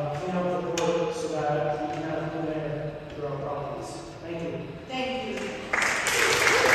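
A man speaks calmly into a microphone in an echoing hall.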